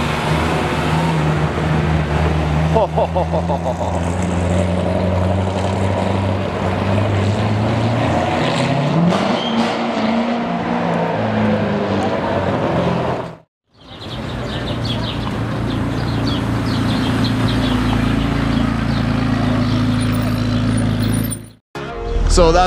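A sports car engine rumbles deeply as the car drives past.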